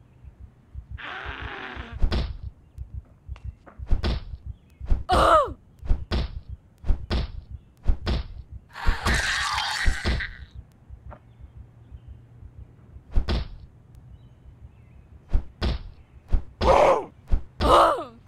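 Zombies groan and moan.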